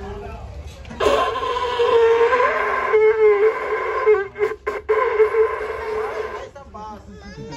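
A conch shell blows a loud, steady, horn-like note.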